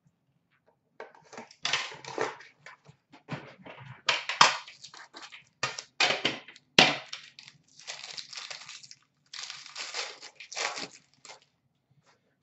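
Cards and wrappers rustle and clatter as hands rummage through a box.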